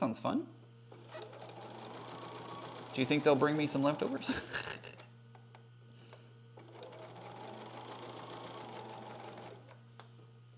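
A sewing machine whirs steadily in short runs.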